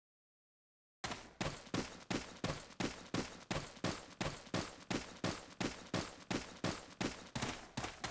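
Boots thud in quick, steady footsteps.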